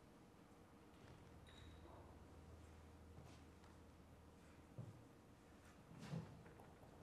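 A low zither is plucked with sparse, slow notes.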